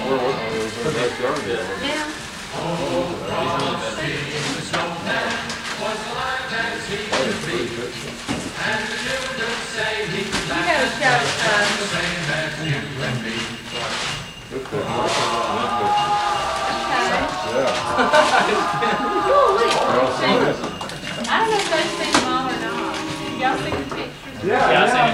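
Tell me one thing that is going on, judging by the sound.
Several men and women talk and chatter nearby in a room.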